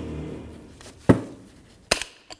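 A torque wrench gives a sharp click.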